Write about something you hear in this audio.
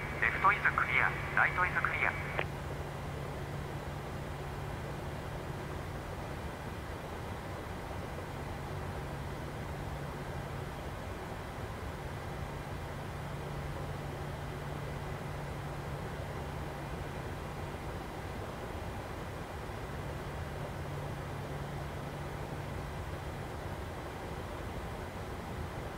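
An aircraft engine hums steadily.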